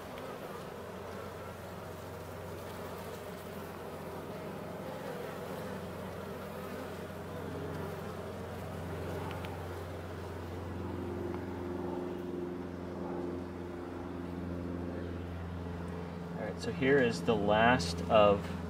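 Honeybees buzz in a dense swarm over an open hive.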